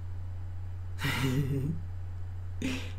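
An older woman laughs softly.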